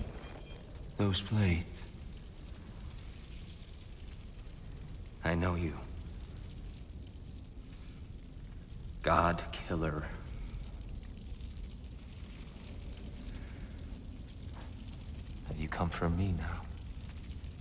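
A man speaks in a low, weary voice with short pauses.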